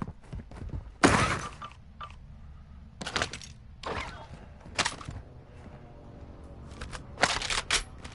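Gear clatters as a weapon is picked up.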